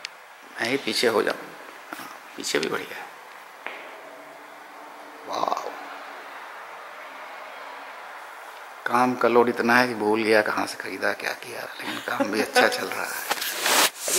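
An elderly woman speaks close by.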